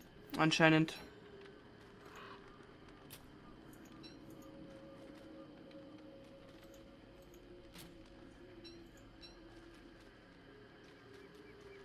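Soft footsteps patter on dry ground.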